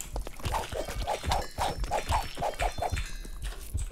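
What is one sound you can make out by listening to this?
A sword strikes a slimy creature with a wet squelch.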